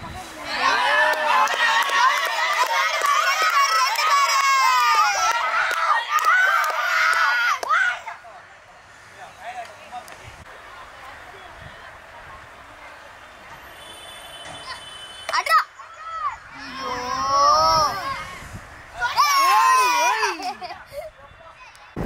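Young boys shout and call to each other outdoors.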